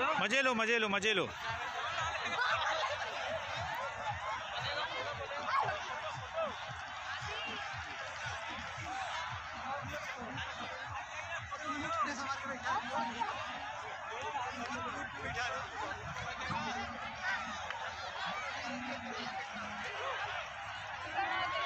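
Children shout and laugh close by.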